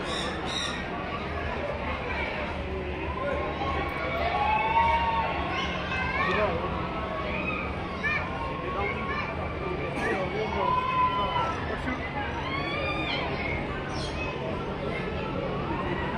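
A crowd of adults and children chatters nearby.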